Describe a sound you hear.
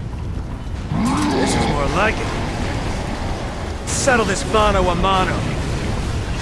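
A man speaks in a low, taunting voice.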